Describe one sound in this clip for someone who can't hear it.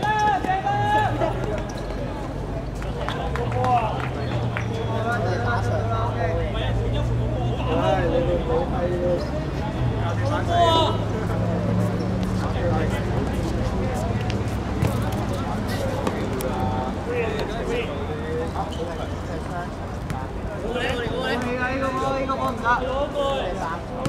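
Young men shout and call to each other outdoors across an open court.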